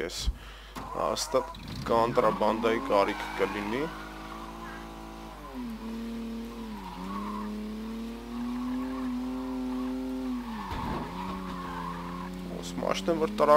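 A car engine hums and revs, shifting gears as the car speeds along.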